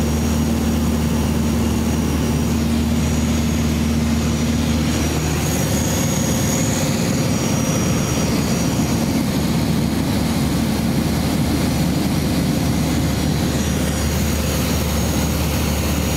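A small plane's propeller engine drones steadily from inside the cabin.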